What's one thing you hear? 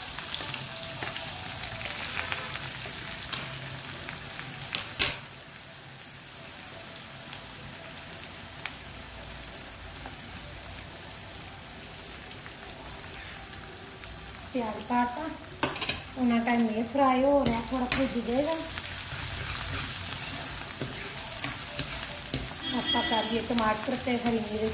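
Onions sizzle gently in hot oil.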